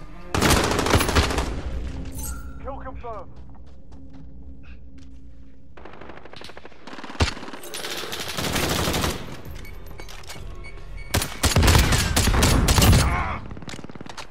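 Rifle gunfire cracks in rapid bursts.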